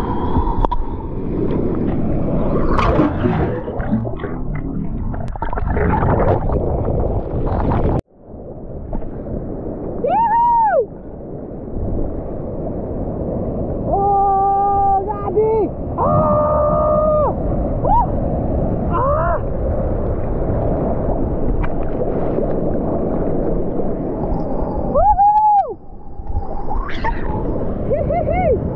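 Ocean waves break and crash close by.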